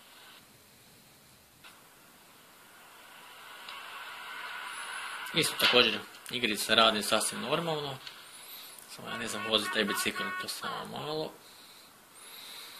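Video game sounds play from a small phone speaker.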